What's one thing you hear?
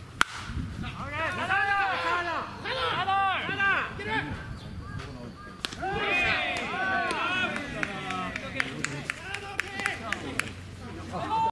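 Young men shout and call out nearby outdoors.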